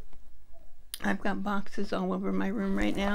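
An older woman talks calmly and close by.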